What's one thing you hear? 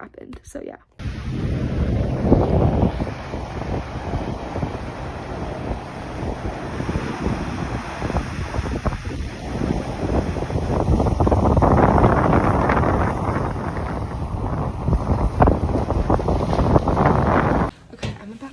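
Waves crash and wash onto a shore.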